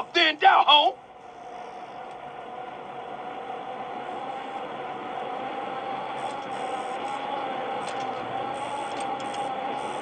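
A bicycle rolls steadily over dirt.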